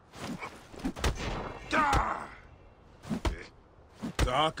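Blows land with sharp, heavy thuds during a scuffle.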